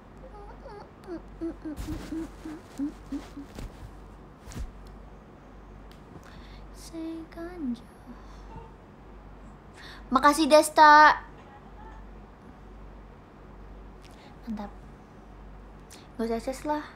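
A young woman talks casually and playfully, close to the microphone.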